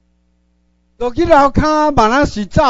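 A woman speaks loudly and expressively close by.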